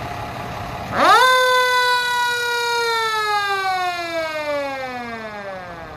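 A mechanical siren winds up sharply to a loud wail, then slowly winds down.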